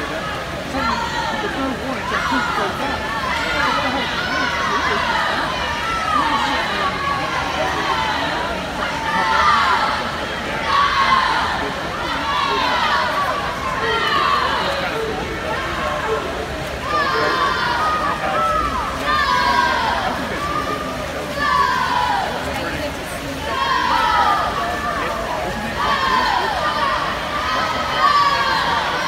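A crowd of spectators cheers and shouts loudly in a large echoing hall.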